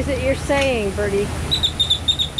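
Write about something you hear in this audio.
A bird calls with whistling, gliding notes close by.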